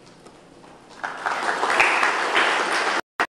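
A small audience applauds.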